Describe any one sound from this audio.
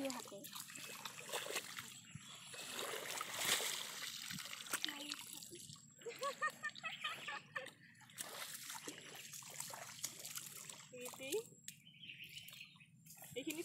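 Water splashes as feet wade through a muddy field.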